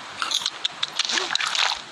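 Water splashes loudly as something plunges in.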